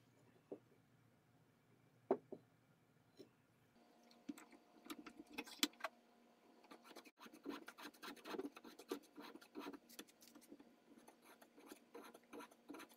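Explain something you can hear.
Wooden pieces knock and scrape against metal in quick, light clicks.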